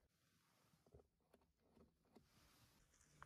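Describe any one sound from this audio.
A seat belt height adjuster clicks as it slides.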